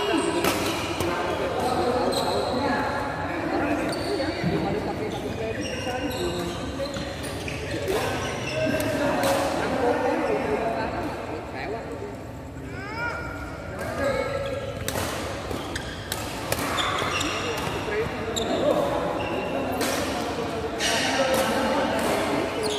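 Young men and women talk and call out loudly nearby.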